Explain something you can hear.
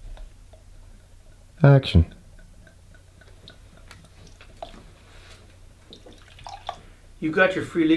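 Liquid pours into a glass.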